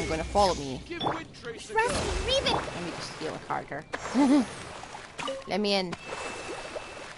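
A magical burst crackles and whooshes.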